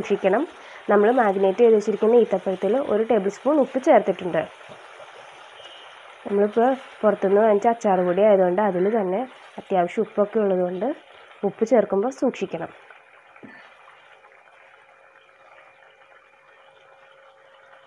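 A wooden spoon scrapes and stirs thick sauce in a pot.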